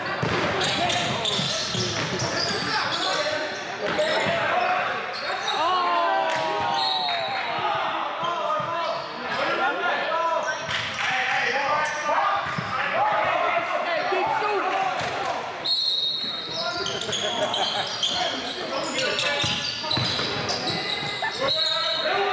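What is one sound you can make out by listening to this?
A basketball bounces on a wooden court in a large echoing gym.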